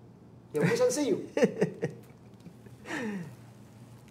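A second man laughs.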